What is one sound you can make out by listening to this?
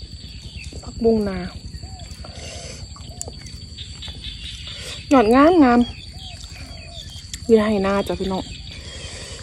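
A young woman speaks in short bursts close to the microphone.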